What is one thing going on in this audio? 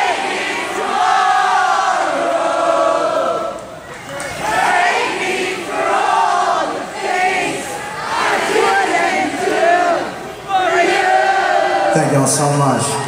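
A man sings loudly through a loudspeaker.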